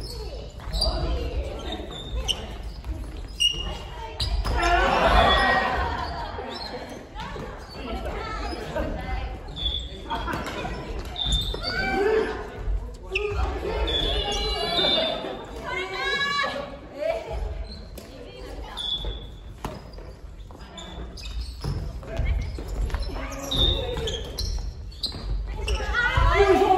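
Men and women call out and talk during play, echoing in a large hall.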